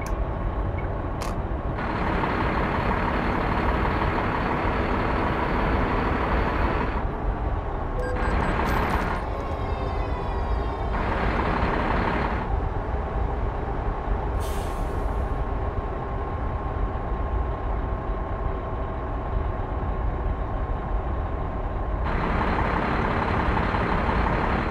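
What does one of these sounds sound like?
Tyres roll on a road with a low rumble.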